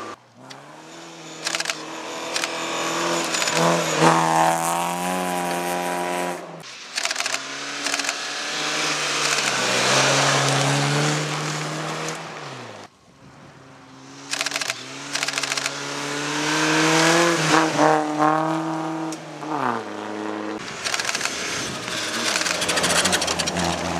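Car engines rev up and down as drivers shift gears.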